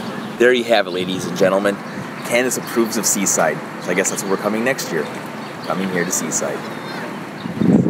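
A man talks cheerfully and close by.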